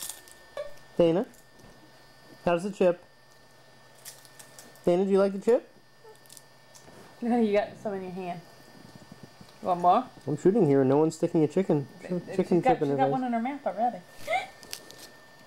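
A woman talks softly and playfully to a toddler close by.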